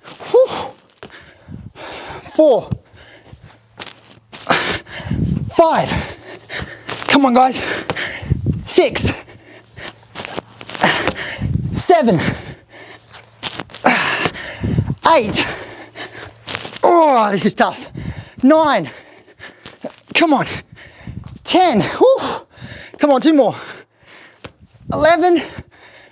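Feet thump on the floor as a man jumps and lands repeatedly.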